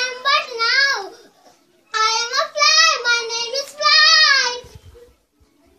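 Young children sing loudly together in high voices, close by.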